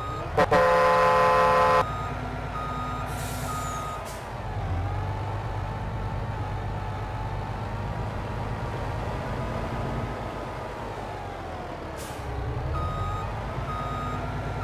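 A heavy truck engine rumbles steadily as the truck drives.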